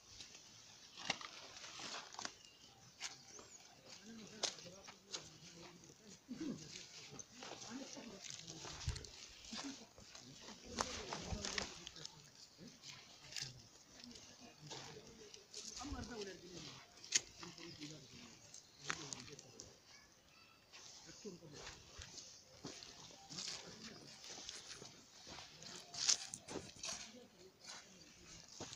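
Footsteps crunch on grass and dry leaves.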